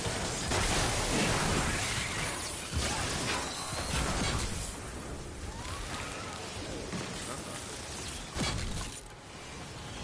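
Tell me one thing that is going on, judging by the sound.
A pickaxe repeatedly strikes and smashes wood and metal.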